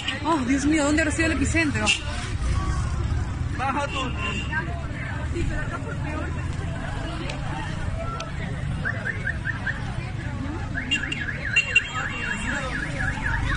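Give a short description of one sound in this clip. A car engine rumbles as a car drives past.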